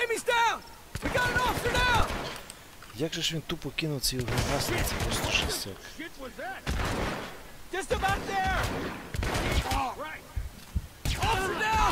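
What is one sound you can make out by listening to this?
Pistol shots ring out.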